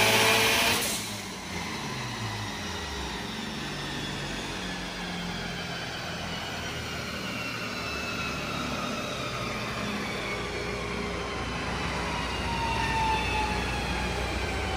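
Dyno rollers whine as they spin down slowly.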